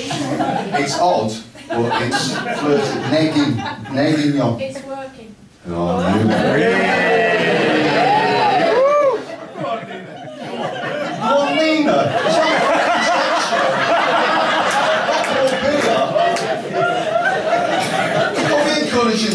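A man talks animatedly through a microphone in a room that echoes.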